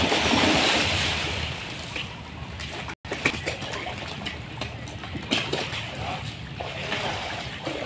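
Fish thrash and splash loudly at the water's surface.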